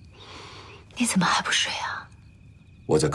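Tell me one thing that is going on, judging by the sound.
A young woman asks a question softly and sleepily.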